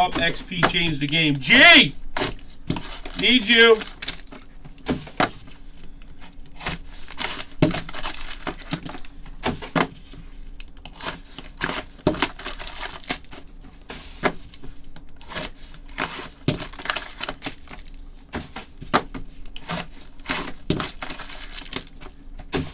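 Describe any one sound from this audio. Hands rustle and tap plastic-wrapped card packs.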